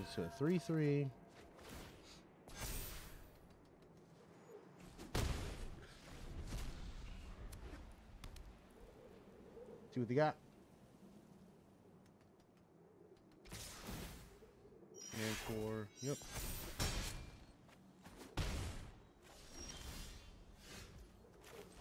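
Digital card game sound effects whoosh and thud as cards move and strike.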